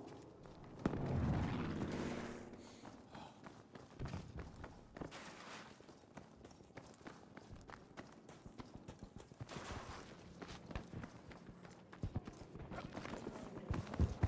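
Footsteps crunch on the ground.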